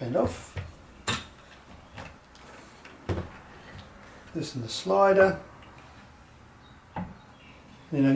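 Wooden parts knock and clatter as they are handled.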